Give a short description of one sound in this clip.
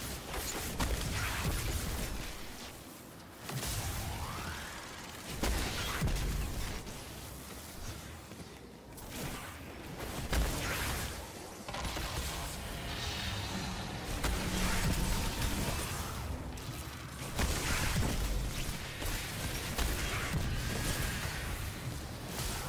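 Game weapons fire and blast in rapid bursts.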